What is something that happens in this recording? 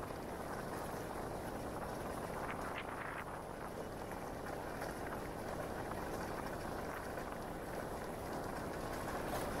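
Tyres rumble over cobblestones.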